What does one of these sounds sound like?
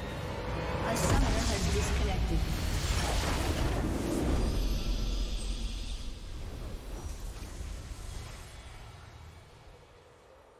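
A deep booming fanfare swells for a game victory and slowly fades.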